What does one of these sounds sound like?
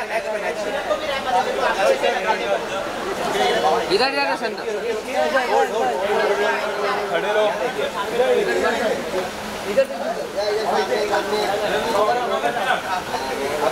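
Men call out and chatter loudly nearby.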